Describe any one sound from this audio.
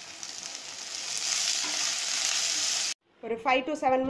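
Chopped okra sizzles as it drops into a hot pan.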